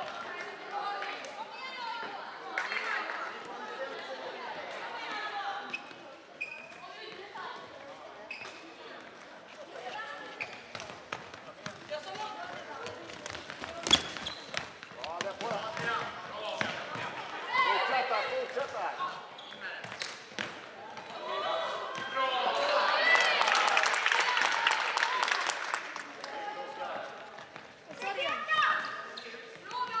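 Plastic sticks knock against a ball and the hard floor.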